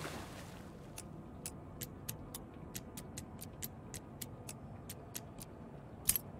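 Small clicks tick rapidly as a combination lock's dials turn.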